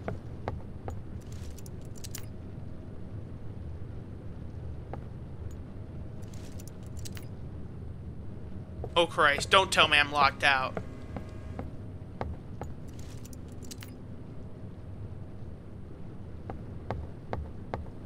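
A door handle rattles as it is tried.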